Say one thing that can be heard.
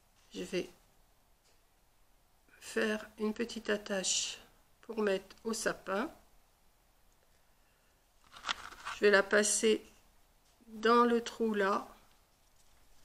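An elderly woman talks calmly close by.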